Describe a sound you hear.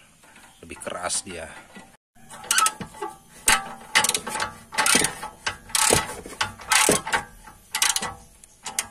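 A ratchet wrench clicks in quick bursts as a bolt is turned.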